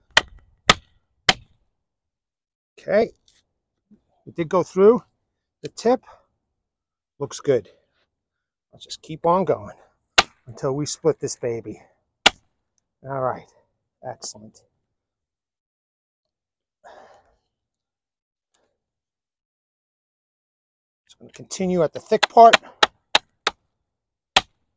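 A knife blade knocks sharply into a piece of wood.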